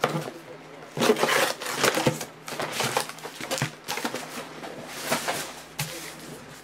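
Card packs rustle and shuffle in hands.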